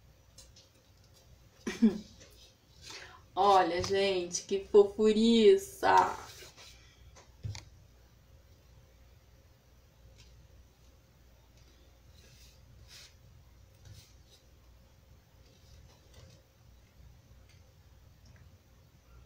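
Small taps and rustles come from handling a light box.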